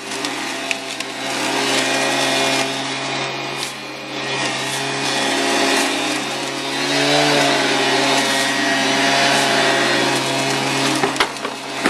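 A leaf blower engine roars steadily close by.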